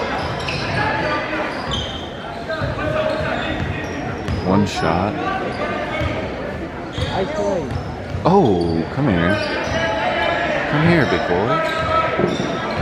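A large crowd murmurs and chatters in an echoing gym.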